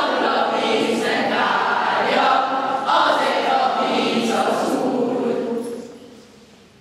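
A choir of children sings together.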